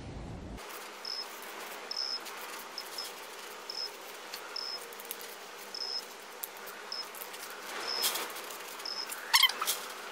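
A ratchet clicks as a bolt is turned.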